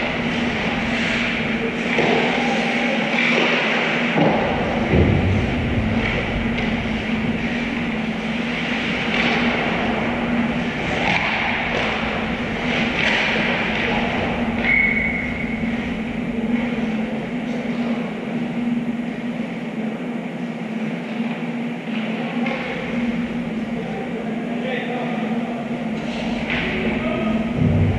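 Skates scrape and hiss across the ice in a large echoing rink.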